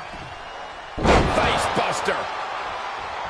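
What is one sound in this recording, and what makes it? A body slams hard onto a mat.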